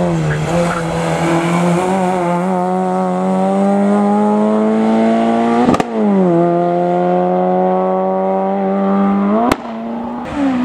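A racing car engine roars loudly, revving high and shifting up through the gears as it drives away.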